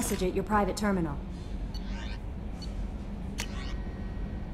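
A soft electronic chime sounds as a menu opens.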